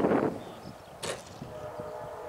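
A model plane touches down on grass with a soft thump.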